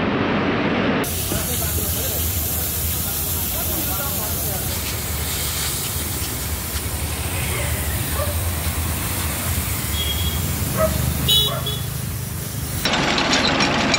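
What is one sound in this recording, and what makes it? A pressure washer sprays water with a steady hiss.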